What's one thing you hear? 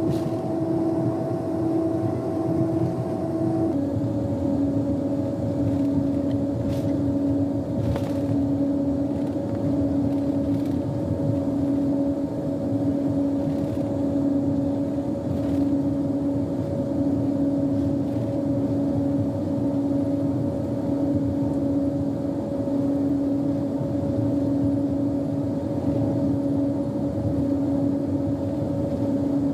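An airplane's engines rumble and hum steadily while it rolls along the runway.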